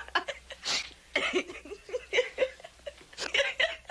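A young woman speaks with animation, laughing between words.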